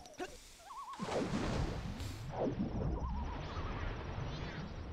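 Water splashes and bubbles.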